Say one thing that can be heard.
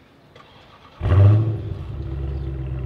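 A car engine starts with a loud roar.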